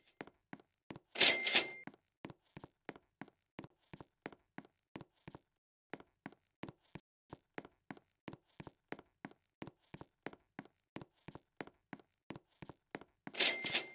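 Quick game footsteps tap steadily.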